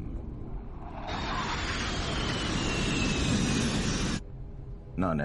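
A jet airliner roars steadily as it flies.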